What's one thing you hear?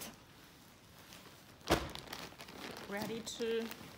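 A rubber mat flops and thuds as it is folded.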